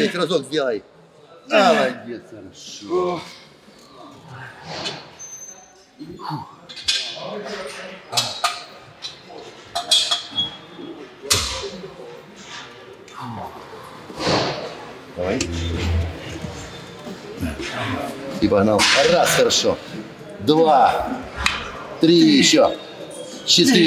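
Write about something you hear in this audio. A middle-aged man speaks close by with animation.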